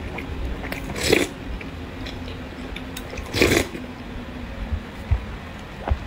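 A spoon scrapes and splashes in a thick sauce.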